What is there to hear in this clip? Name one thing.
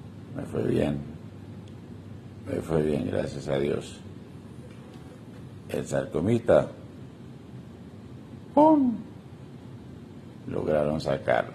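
A man speaks slowly and hoarsely in short bursts, close up.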